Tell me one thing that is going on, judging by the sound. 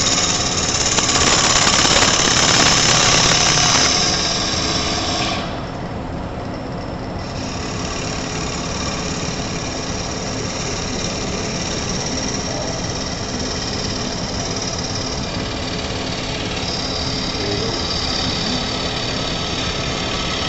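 A wood lathe hums steadily as it spins.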